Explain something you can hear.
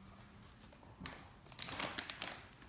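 A plastic bag rustles as a large dog drops it onto a sofa.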